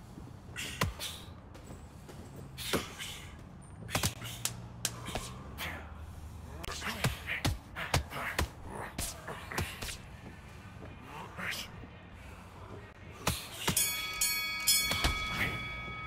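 Punches thud against bodies in quick bursts.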